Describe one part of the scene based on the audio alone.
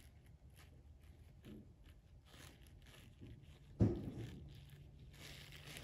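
A spatula scrapes softly against a silicone mould.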